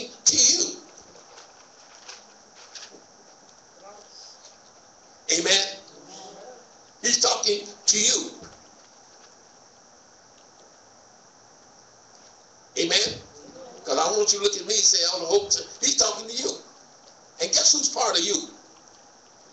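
A man speaks slowly into a microphone, with long pauses, in an echoing room.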